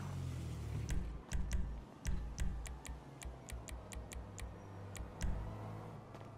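Menu selections click in quick succession.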